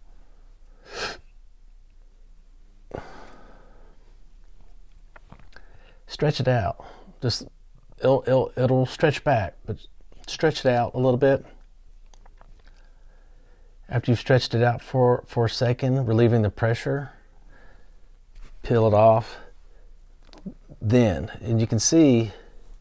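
Small plastic parts click softly as they are handled.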